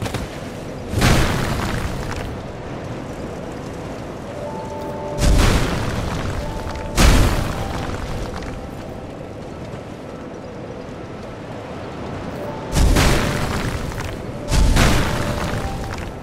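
A blade swishes through the air in loud, sudden whooshes.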